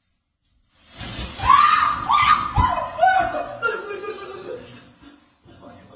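A woman screams loudly and shrieks.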